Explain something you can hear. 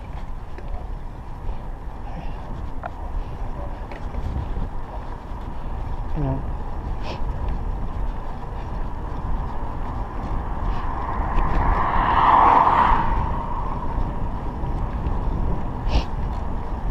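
Bicycle tyres hum on smooth tarmac.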